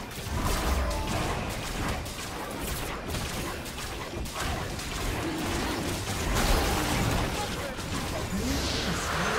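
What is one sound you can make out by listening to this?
Fantasy game spell effects whoosh and crackle.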